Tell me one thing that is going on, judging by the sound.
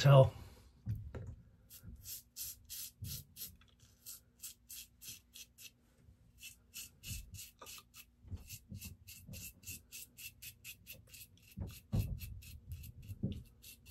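A razor scrapes stubble in short, quick strokes.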